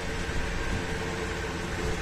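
Gas burners roar steadily.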